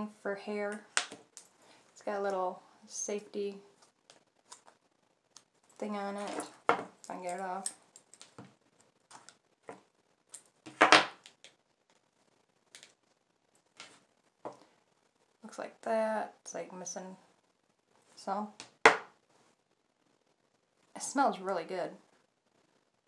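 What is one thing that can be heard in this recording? A woman speaks calmly, close to the microphone, in short phrases.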